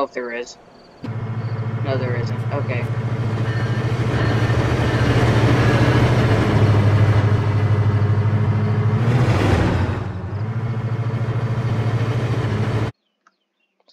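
A train engine hums and rumbles steadily.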